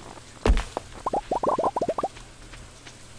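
Small items pop out with quick rising blips.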